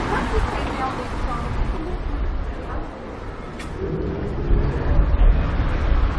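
A car drives slowly past on a wet street.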